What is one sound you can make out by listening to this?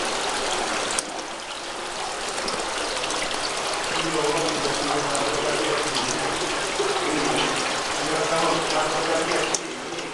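Thin streams of water trickle and splash into a stone basin.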